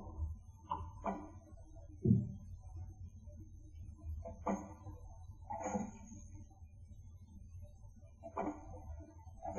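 Metal blades swish and clang in a fight.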